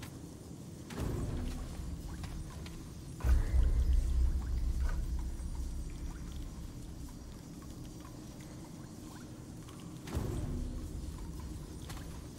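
A deep, rumbling whoosh swells up and slowly fades, several times.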